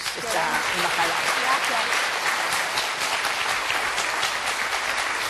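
An audience applauds and cheers loudly.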